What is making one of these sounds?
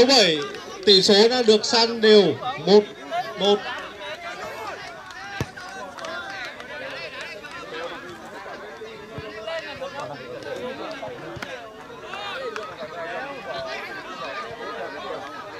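A crowd of men chatters outdoors throughout.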